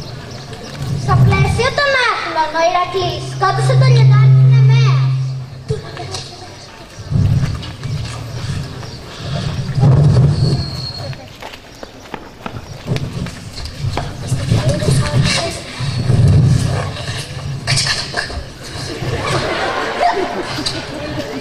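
A young girl reads out over a loudspeaker outdoors.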